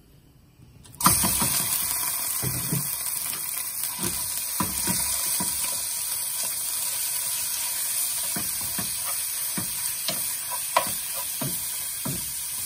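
Minced meat sizzles loudly in a hot pot.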